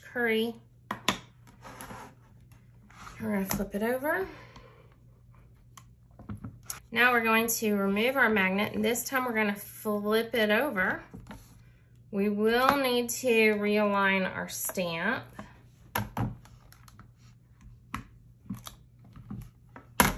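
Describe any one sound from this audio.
Small plastic pieces click and tap on a hard work surface.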